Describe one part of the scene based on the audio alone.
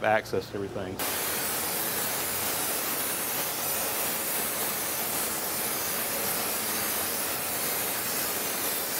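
A cutting torch hisses and roars steadily.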